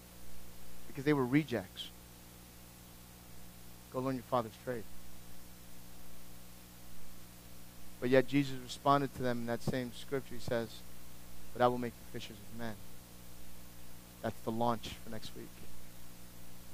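A middle-aged man speaks calmly through a microphone, with long pauses.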